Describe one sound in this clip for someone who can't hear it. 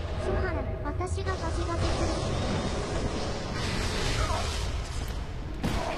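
A heavy blow lands with a crashing thud.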